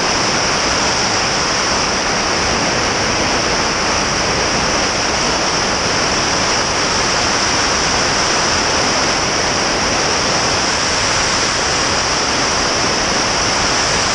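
Wind rushes loudly past a plane in flight.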